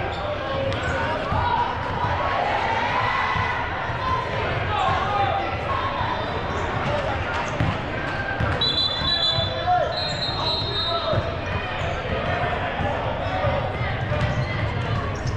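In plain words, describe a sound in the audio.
Many people chatter at a distance in a large echoing hall.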